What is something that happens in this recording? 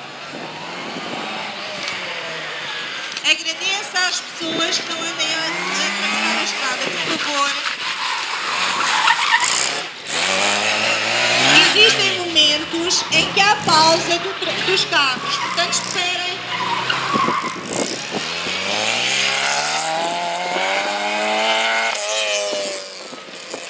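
A small racing car engine revs hard and whines as it speeds past close by.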